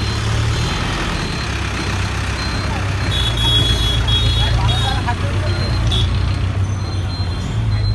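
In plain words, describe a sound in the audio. A bus engine idles with a low rumble nearby.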